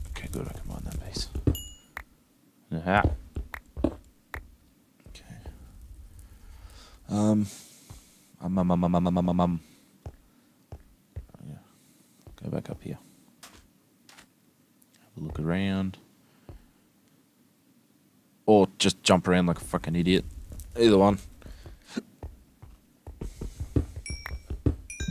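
Footsteps crunch on rough stone.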